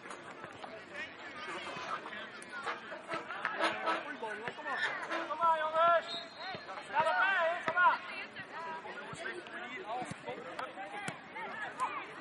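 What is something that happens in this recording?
A crowd of spectators shouts and cheers nearby, outdoors.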